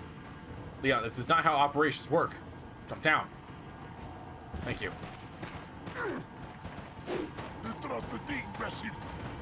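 A young man talks with animation into a microphone, close by.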